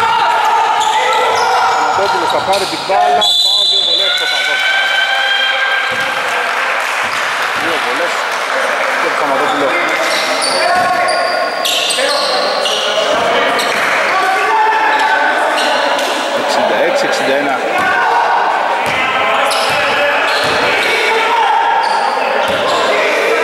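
Men shout to each other in a large echoing gym.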